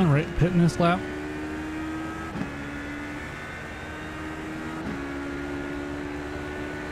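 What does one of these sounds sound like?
A race car engine drones steadily, dropping in pitch as it shifts gears.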